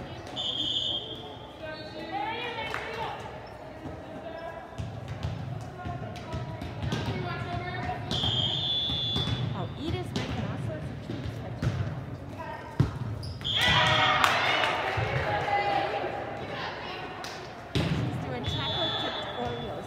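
Young women call out and cheer during play.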